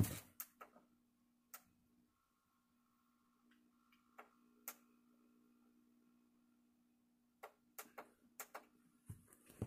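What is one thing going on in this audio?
Buttons on a television click as they are pressed.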